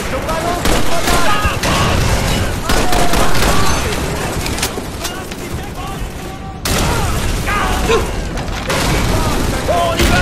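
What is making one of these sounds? Rifle shots crack sharply amid a loud battle.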